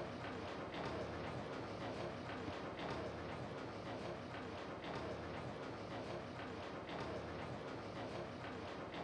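Footsteps tap slowly on a hard floor in a large, echoing room.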